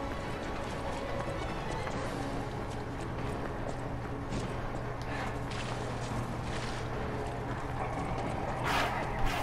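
Footsteps run across cobblestones.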